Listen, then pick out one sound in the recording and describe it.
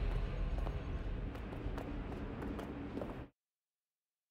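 Footsteps thud quickly up stone stairs.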